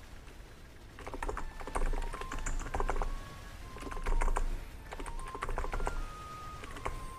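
Video game attack effects chime and crash in rapid bursts.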